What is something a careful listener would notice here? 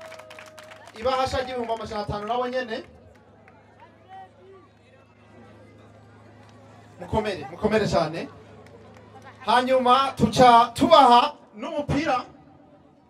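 A man speaks with animation into a microphone over a loudspeaker, outdoors.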